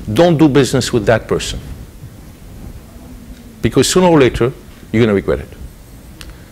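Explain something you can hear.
A man speaks calmly into a microphone in a large room, pausing between phrases.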